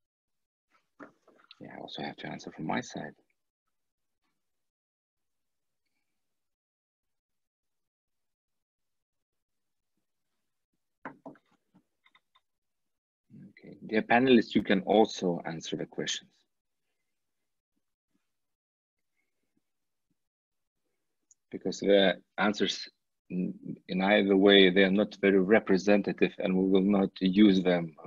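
A man speaks calmly through an online call, in bursts with pauses.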